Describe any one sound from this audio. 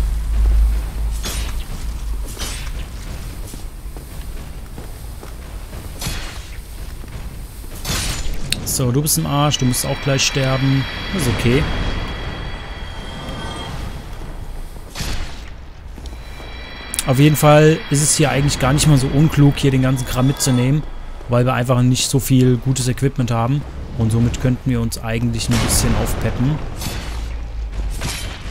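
Metal weapons clang and thud in a fight.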